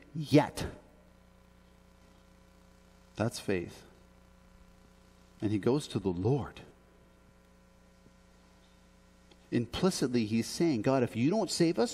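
A man speaks slowly and calmly into a microphone, pausing between phrases.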